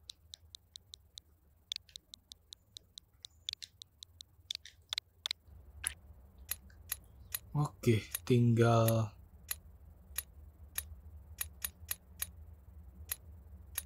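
Short electronic menu clicks tick quickly and repeatedly.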